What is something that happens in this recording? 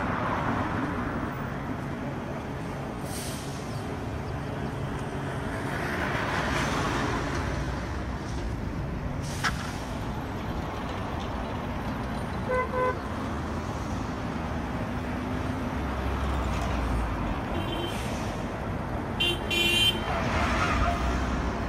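Cars drive past on a busy street, their engines rumbling.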